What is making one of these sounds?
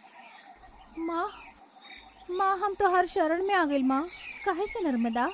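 A woman speaks with feeling, close by.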